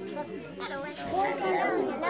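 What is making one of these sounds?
A boy laughs.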